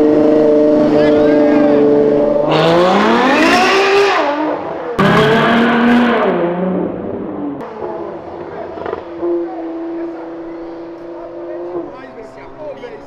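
A sports car engine revs loudly as the car accelerates away.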